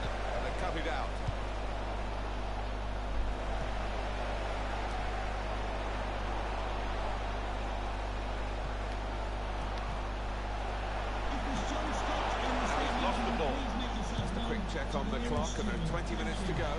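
A football is kicked with dull thumps.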